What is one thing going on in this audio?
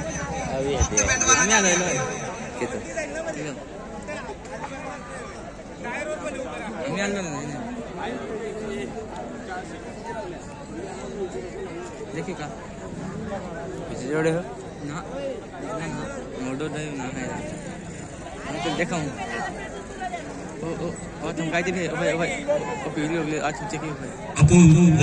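A crowd of men talk and shout all around, close by.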